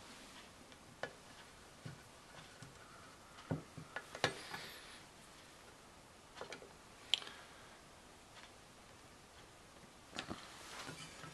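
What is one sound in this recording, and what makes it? A screwdriver scrapes and clicks on metal.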